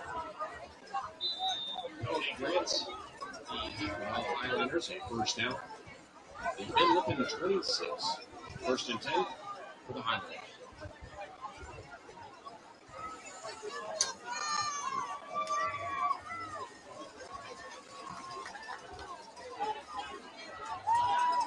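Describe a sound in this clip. A crowd of spectators cheers and chatters outdoors.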